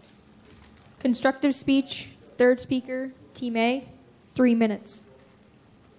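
A young girl speaks into a microphone with a few short phrases.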